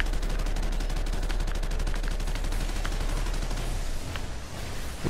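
A heavy machine gun fires in a rapid, steady burst.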